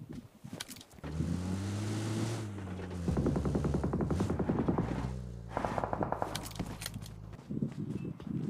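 An off-road vehicle's engine drones and revs.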